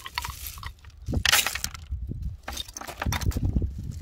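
Seashells clink and rattle as a hand gathers them.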